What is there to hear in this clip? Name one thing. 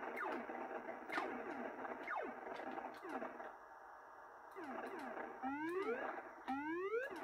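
Retro video game shots zap with quickly falling pitch, again and again.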